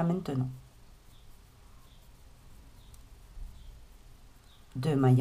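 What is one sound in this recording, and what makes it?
Yarn rustles softly as a crochet hook pulls it through loops.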